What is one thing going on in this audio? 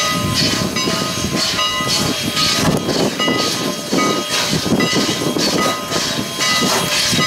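A steam locomotive chugs loudly and heavily in steady, rhythmic bursts close by.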